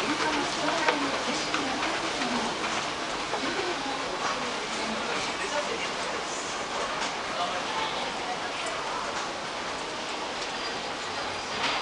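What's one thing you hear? An escalator hums and rattles steadily.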